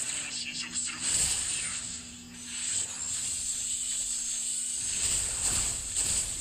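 Magic spells whoosh and burst in a fight.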